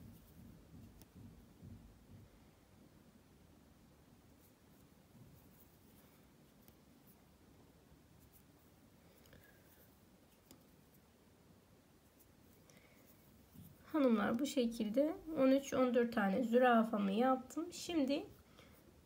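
Thread softly rustles as it is pulled through fabric.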